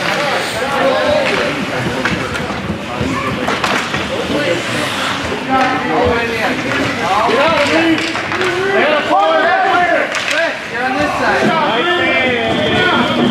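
Ice skates scrape and swish across the ice.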